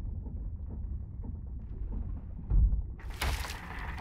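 Water bubbles and gurgles, heard muffled as if underwater.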